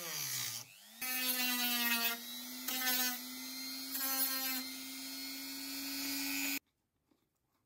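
A rotary tool whirs steadily.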